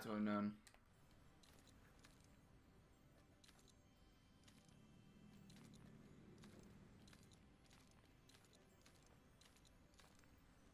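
Soft clicks sound as a small game robot grips and climbs a rock face.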